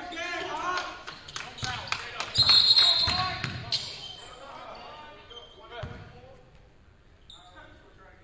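Players shout to each other across the gym.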